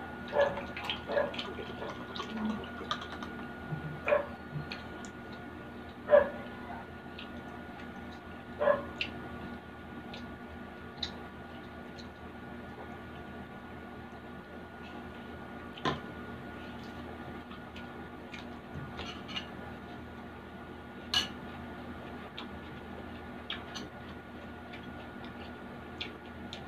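A woman chews food close to a microphone.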